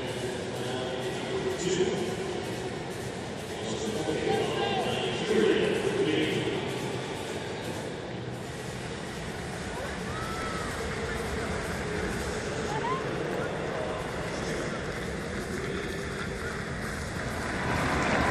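A large stadium crowd murmurs and cheers in a wide open space.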